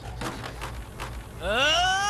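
A young man yells with strain.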